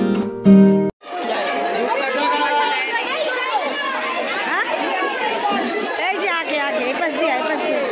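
A crowd chatters all around.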